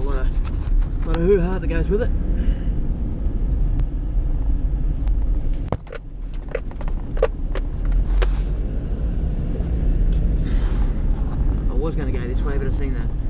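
A car engine rumbles steadily from inside the cabin.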